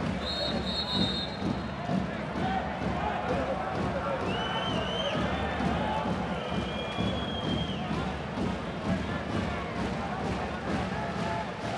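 A large crowd cheers and chants steadily in a big echoing arena.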